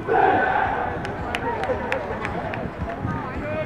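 Players clap their hands in unison.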